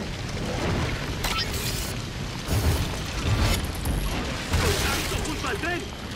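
An explosion booms heavily.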